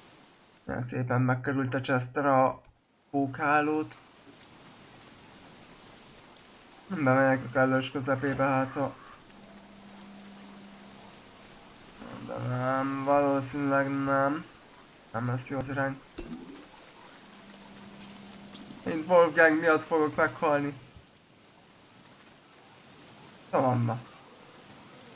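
A man talks calmly and closely into a microphone, in bursts with pauses.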